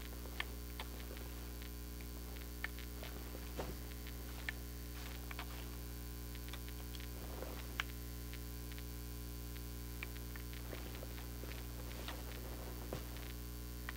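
A game character scrapes and scrambles while climbing rock.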